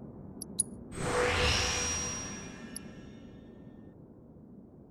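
A bright magical chime swells and fades as an upgrade unlocks.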